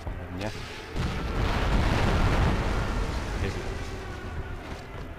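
An explosion roars and slowly rumbles away.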